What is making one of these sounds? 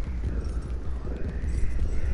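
Hands slap and scrape along the floor as a creature crawls.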